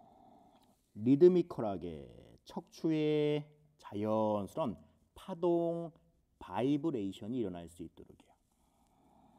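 A man speaks calmly and slowly nearby.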